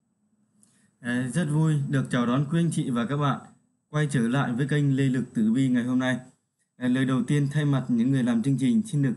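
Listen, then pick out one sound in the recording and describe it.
A man talks calmly and steadily, close to a microphone.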